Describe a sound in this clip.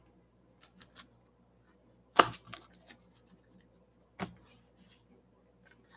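A hand brushes against cardboard boxes.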